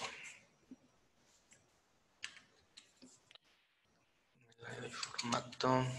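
Computer keys click as a man types.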